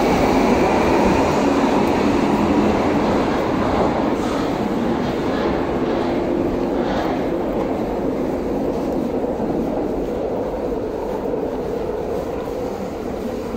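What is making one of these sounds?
A subway train rumbles out of an echoing station and slowly fades.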